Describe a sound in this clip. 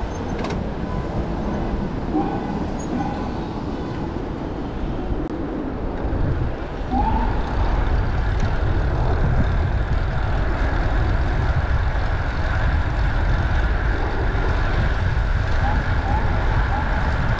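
Wind rushes steadily past a cyclist riding outdoors, growing louder as speed builds.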